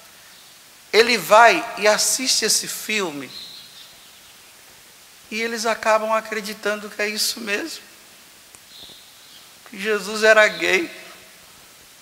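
A man speaks with feeling through a microphone in an echoing hall, pausing between phrases.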